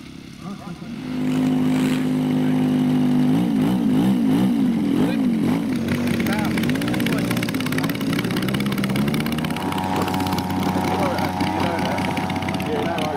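A model plane engine revs up and down loudly.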